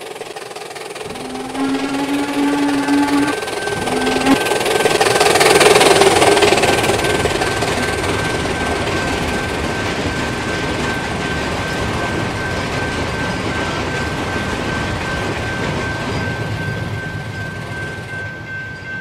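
A steam train rumbles and roars past close by.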